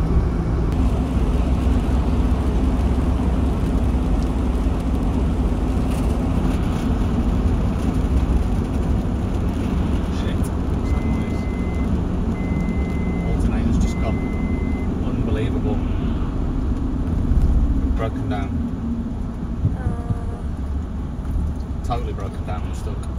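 A car drives fast along a road, heard from inside as a loud, steady rumble and roar of tyres.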